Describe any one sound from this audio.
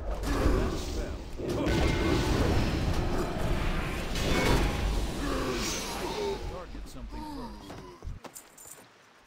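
Spell and weapon sound effects ring out in a video game battle.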